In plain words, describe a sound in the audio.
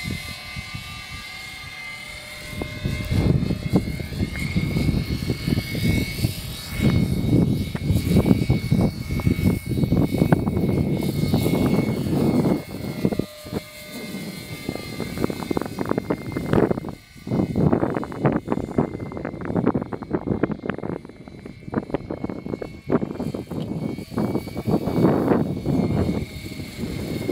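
A radio-controlled tiltrotor model's rotors whine as it flies overhead.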